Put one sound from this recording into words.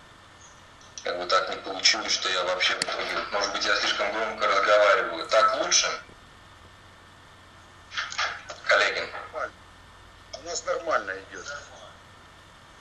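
A young man speaks calmly into a microphone over an online call.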